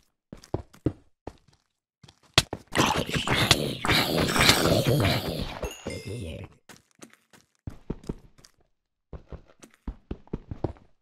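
Stone blocks crack and crumble under quick, repeated digging blows.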